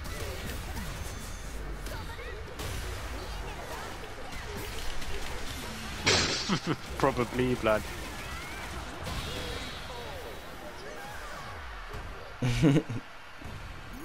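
Punches, kicks and energy blasts hit hard in quick succession.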